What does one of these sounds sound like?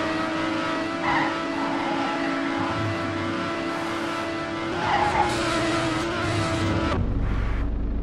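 A racing car engine whines steadily at high speed.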